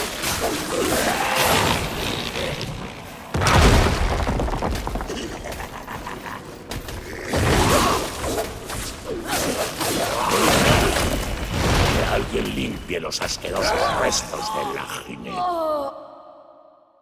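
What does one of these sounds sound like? Blades slash and strike with loud impacts in a game fight.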